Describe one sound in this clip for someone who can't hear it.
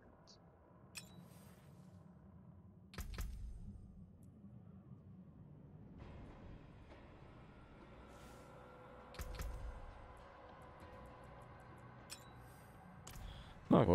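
Soft interface clicks and whooshes sound as game menus open and close.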